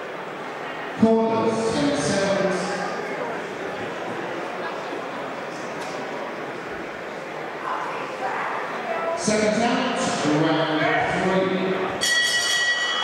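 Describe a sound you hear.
A man speaks firmly to a boxer up close.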